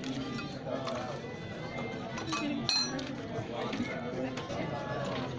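Several people talk and chatter nearby.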